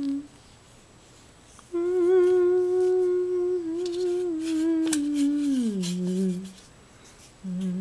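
A sheet of paper rustles as it is lifted.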